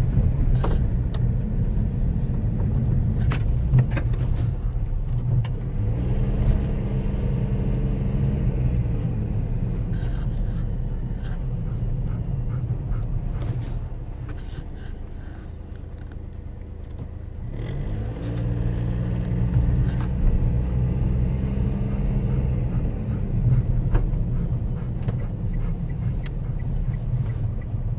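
A car engine hums steadily from inside the car, rising and falling in pitch.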